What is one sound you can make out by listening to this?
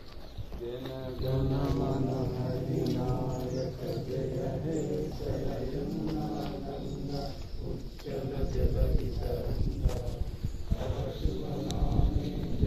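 A crowd of men and women sings together in unison.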